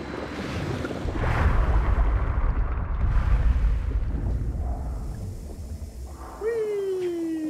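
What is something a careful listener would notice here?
A deep watery rumble swells and then fades.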